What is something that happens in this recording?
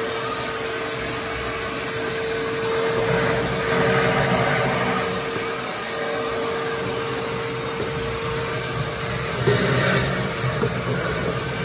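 A vacuum cleaner hums and roars steadily close by.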